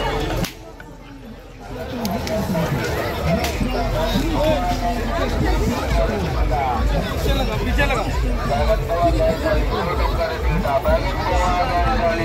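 A crowd of men and women chatters all around, close by and outdoors.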